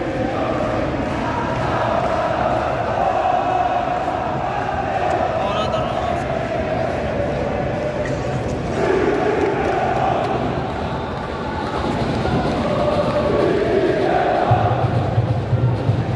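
A large stadium crowd chants and sings loudly, echoing across the open stands.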